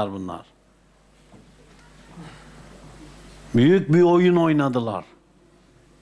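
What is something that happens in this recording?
An elderly man speaks calmly and slowly, close by, with pauses.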